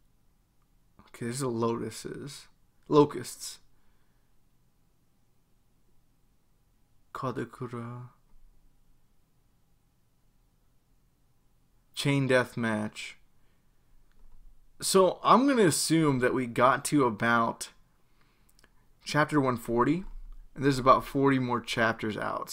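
A young man talks calmly into a close microphone, pausing between phrases.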